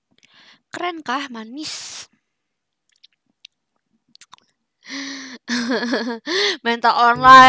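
A young woman talks animatedly into a headset microphone.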